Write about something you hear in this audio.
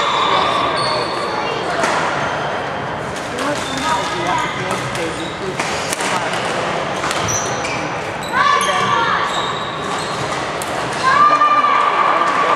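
Shuttlecocks are struck with rackets, with sharp pops echoing around a large hall.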